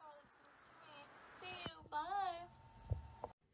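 A girl speaks close by, cheerfully.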